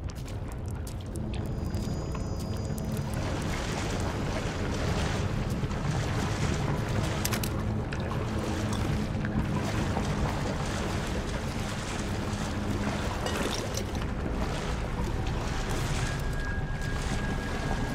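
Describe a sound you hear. Water trickles and drips in an echoing tunnel.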